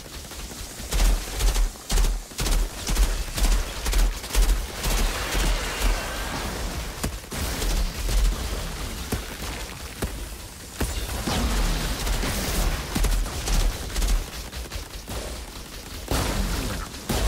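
Gunshots and blasts crack rapidly.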